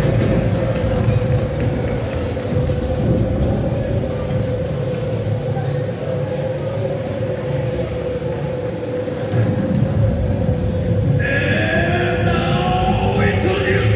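A large crowd murmurs and chatters in a big echoing hall.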